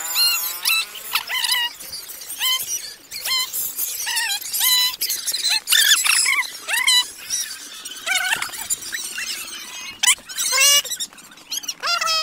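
Children shout and cheer excitedly close by.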